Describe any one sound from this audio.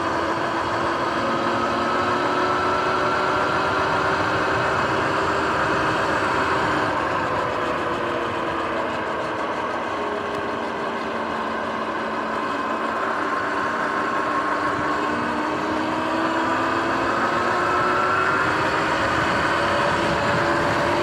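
Tyres roll on a paved path.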